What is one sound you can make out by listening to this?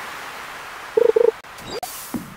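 A short double chime rings as a fish bites.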